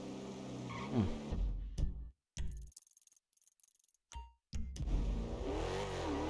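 A car engine revs.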